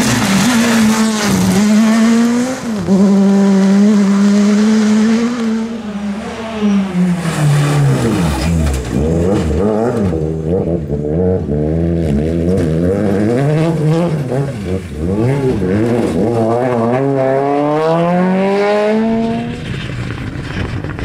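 Rally car engines roar loudly, revving up and down as they pass close by.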